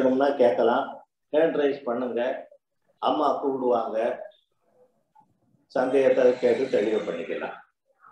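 A middle-aged man talks calmly, heard through an online call.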